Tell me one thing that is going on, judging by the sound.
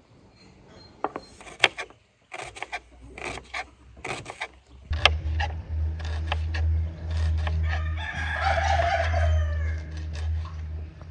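A knife chops onions on a wooden board with sharp taps.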